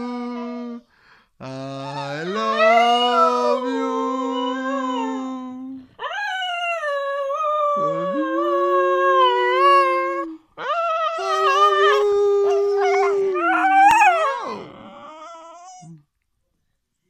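A dog howls loudly and long, close by.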